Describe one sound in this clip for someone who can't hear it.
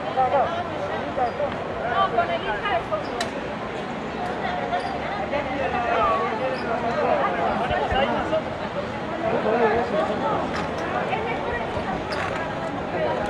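A young woman speaks with animation through a microphone and loudspeakers outdoors.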